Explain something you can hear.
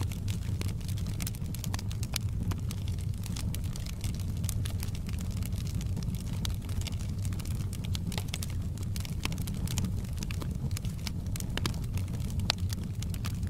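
Burning logs crackle and pop.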